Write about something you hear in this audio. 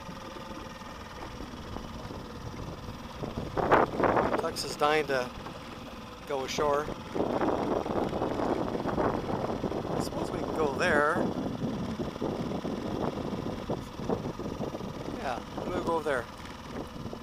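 Water splashes and laps against a small boat.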